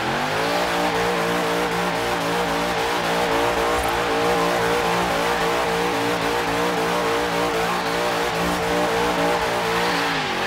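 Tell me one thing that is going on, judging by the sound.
Tyres squeal as a car drifts.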